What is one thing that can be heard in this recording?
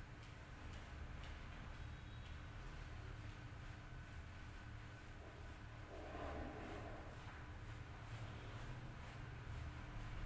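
Hands rub and scrub wet, lathered hair.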